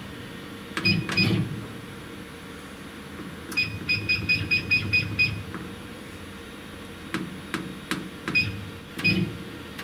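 A laser cutter's head whirs as it moves.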